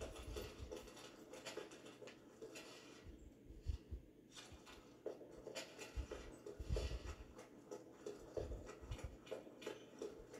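Footsteps patter steadily on stone, heard through a television speaker.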